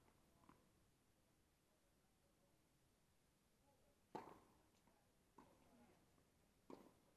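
Tennis balls are struck sharply with rackets, and the hits echo a little.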